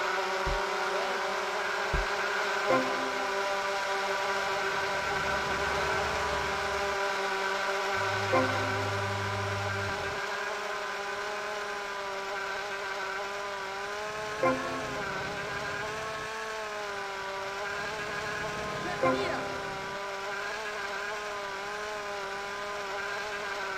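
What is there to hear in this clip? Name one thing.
A small propeller plane's engine drones steadily throughout.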